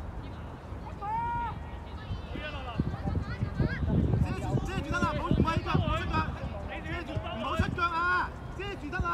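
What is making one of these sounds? Young players shout to each other from across an open field.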